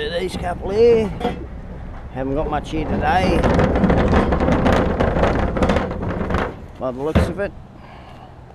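A plastic wheelie bin rolls and rattles over pavement.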